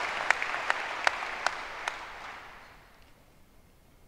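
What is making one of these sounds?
An audience applauds, then the clapping fades away.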